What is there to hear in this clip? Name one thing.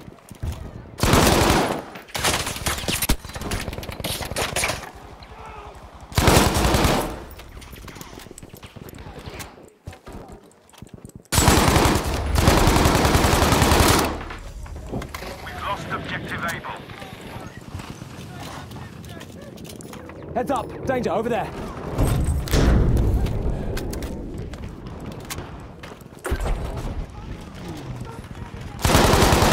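Rifle shots crack loudly, echoing away.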